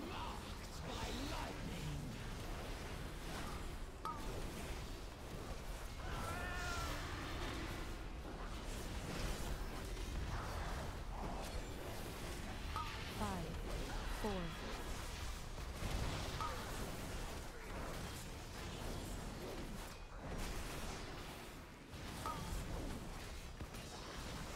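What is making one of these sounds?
Weapon hits clash and thud repeatedly.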